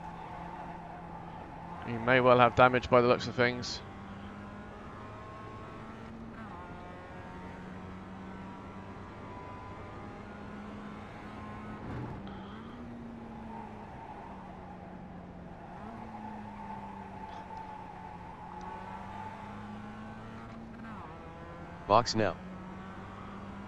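A racing car engine drones steadily, rising and falling in pitch.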